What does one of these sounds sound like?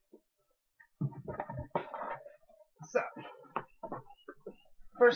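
Cardboard packaging rustles and crinkles.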